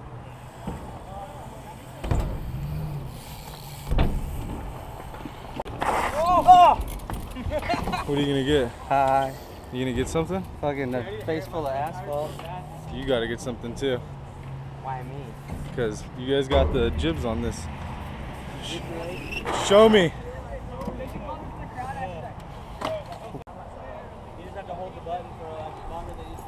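Bike tyres roll over concrete close by.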